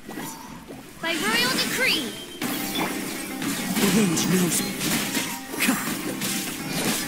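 Magic blasts and crackling hits burst in a loud, fast fight.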